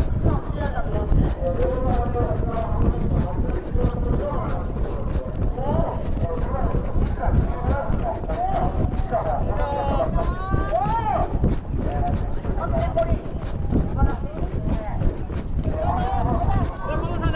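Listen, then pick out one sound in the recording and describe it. Wind rumbles against the microphone outdoors.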